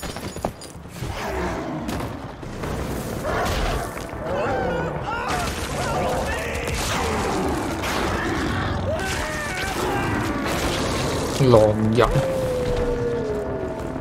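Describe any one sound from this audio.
Creatures growl and snarl.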